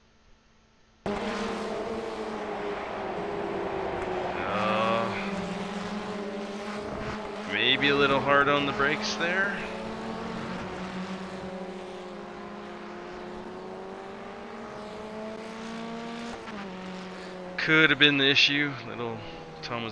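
Racing car engines drone and whine at high revs.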